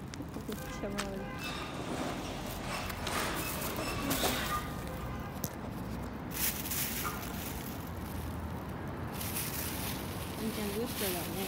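A dog sniffs at the ground.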